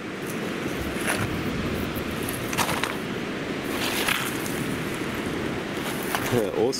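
Stones clack and pebbles crunch as rocks are handled up close.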